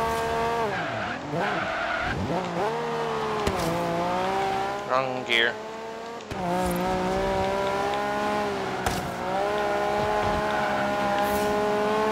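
A car engine revs hard, rising and falling as it shifts gears.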